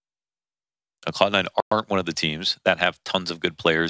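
A young man speaks quickly and with animation into a headset microphone.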